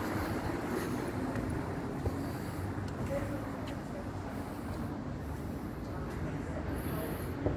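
Traffic hums steadily on a nearby street.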